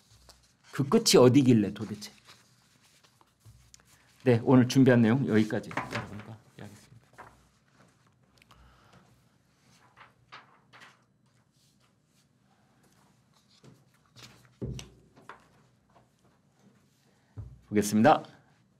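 Paper rustles as an elderly man handles sheets.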